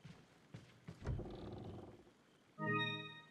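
Wooden cabinet doors creak open.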